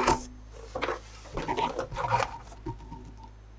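Small toys clatter lightly against cardboard.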